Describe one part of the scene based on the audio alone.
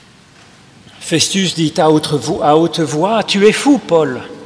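An older man speaks calmly through a microphone in a large echoing hall.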